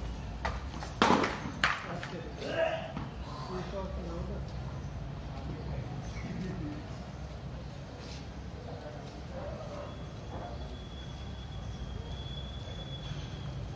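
Bare feet slap on stone paving close by.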